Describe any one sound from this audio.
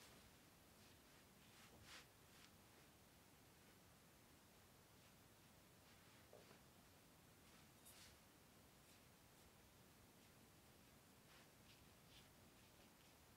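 A brush softly strokes across paper.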